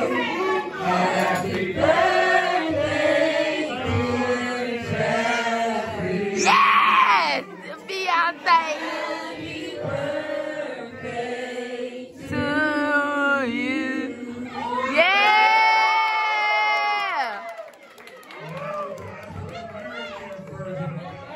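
A group of people sings together.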